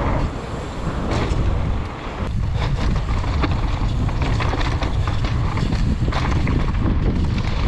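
A mountain bike's frame and chain clatter over bumps.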